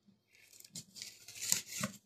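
A knife scrapes through fish flesh.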